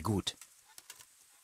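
A man speaks briefly close to a microphone.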